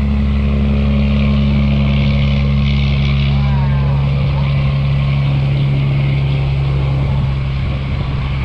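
A boat engine drones steadily nearby.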